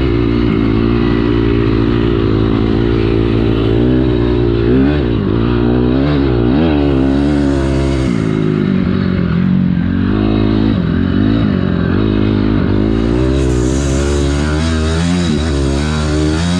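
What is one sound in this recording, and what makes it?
A dirt bike engine roars loudly close by, revving up and down.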